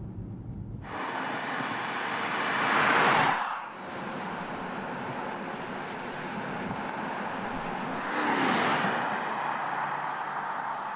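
A car drives past on a road with a rushing whoosh.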